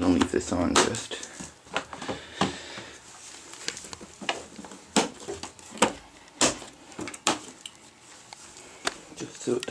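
A plastic pet carrier knocks and rattles as it is handled.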